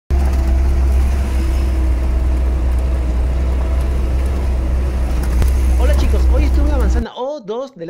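Tyres crunch over a rough dirt road.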